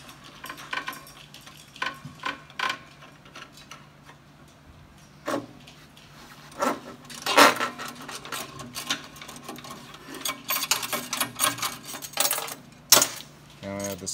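Metal parts click and clink as a cable fitting is unscrewed by hand.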